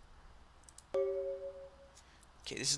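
A short bright electronic chime rings.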